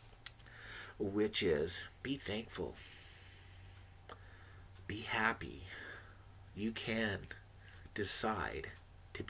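A middle-aged man talks calmly and close up, with pauses, through a microphone.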